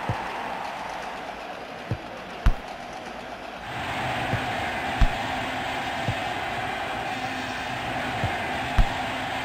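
A football is kicked with dull thuds in a video game.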